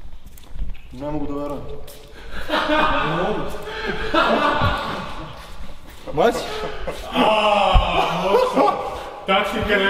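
A young man talks loudly nearby.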